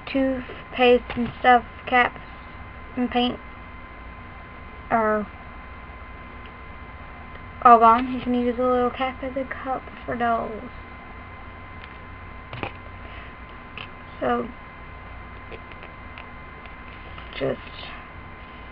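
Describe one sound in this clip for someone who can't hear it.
A young girl talks close by, casually.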